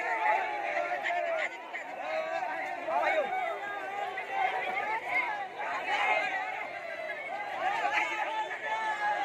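A crowd of young men shout and cheer outdoors.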